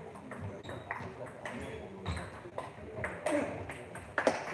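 A table tennis ball clicks quickly back and forth off bats and a table.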